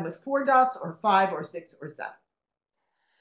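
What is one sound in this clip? A woman speaks calmly through a webcam microphone.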